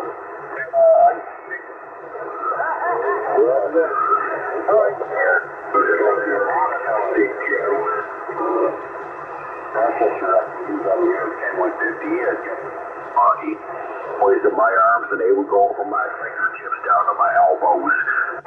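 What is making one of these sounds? A radio receiver hisses and crackles with static while it is tuned across stations.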